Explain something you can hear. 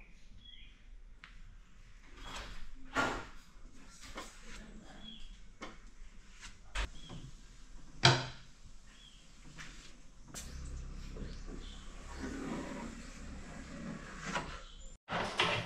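A window frame knocks and clicks as it is handled.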